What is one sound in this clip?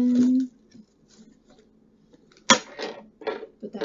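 Packaging crinkles and rustles in hands.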